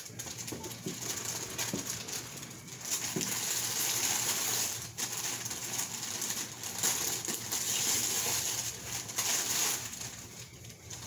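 Tissue paper rustles and crinkles as a gift is unwrapped.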